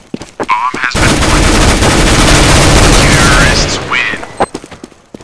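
A loud explosion roars and slowly fades.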